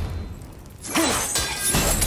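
A metal chain rattles and clanks.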